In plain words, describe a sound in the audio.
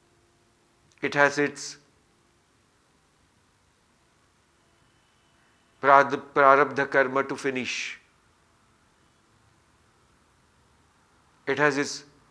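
A middle-aged man speaks slowly and calmly close to a microphone, with long pauses.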